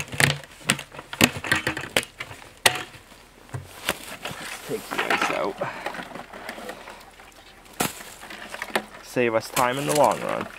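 Plastic buckets knock and clatter against each other.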